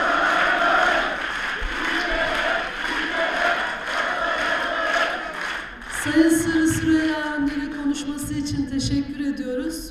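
A woman speaks steadily into a microphone, heard through loudspeakers in a large hall.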